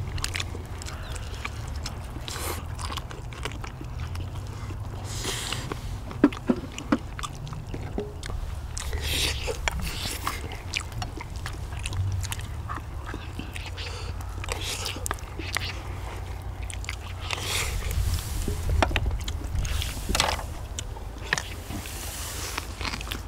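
People chew and smack their lips loudly while eating close by.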